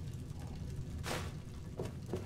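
A small item is picked up with a short soft rustle.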